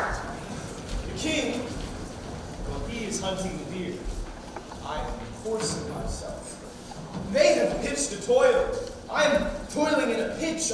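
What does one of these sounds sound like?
A young man speaks loudly on a stage, projecting his voice in a large hall.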